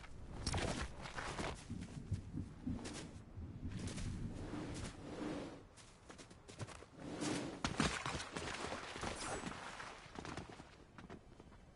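Footsteps scuff on rock.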